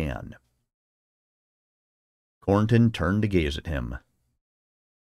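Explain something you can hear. A man reads aloud calmly and close to a microphone.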